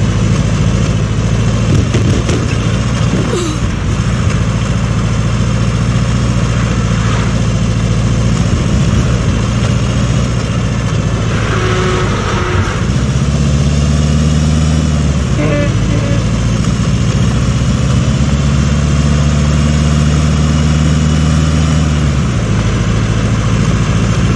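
Tyres hiss on a snowy road.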